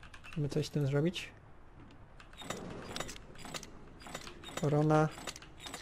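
Metal dials on a lock click as they turn.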